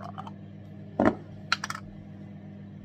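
A lid clatters down onto a table.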